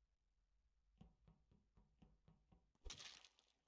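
Soft footsteps patter in quick succession.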